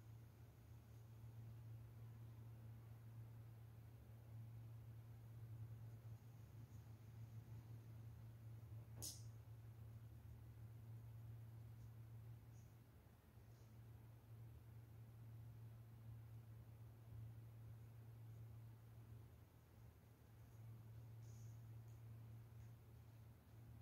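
A paintbrush strokes softly across canvas.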